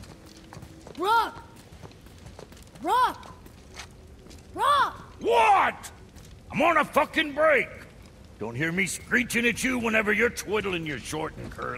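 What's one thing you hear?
An elderly man speaks gruffly and with animation.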